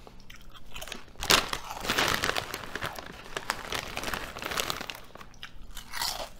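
A chip bag crinkles and rustles.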